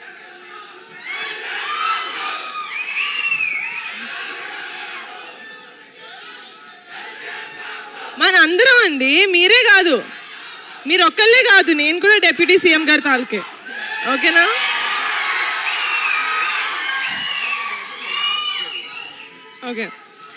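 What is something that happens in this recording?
A large crowd cheers and whistles in a big echoing space.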